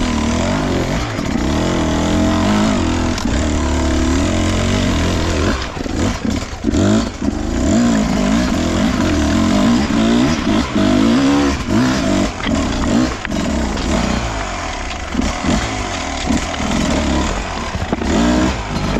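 A dirt bike engine revs and labours up close, rising and falling in pitch.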